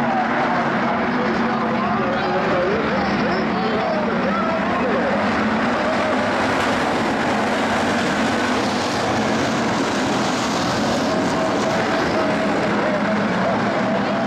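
Many race car engines roar loudly and steadily, revving up and down.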